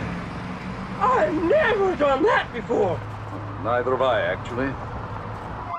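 An older man speaks loudly and excitedly close by.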